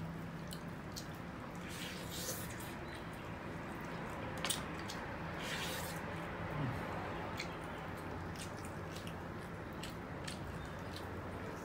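Chewing and lip smacking on meat sound close by.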